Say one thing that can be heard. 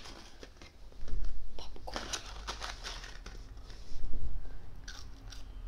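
A paper bag rustles and crinkles close by.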